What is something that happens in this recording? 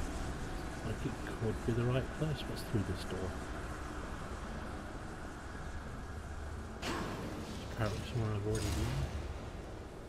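A man talks casually, close to a microphone.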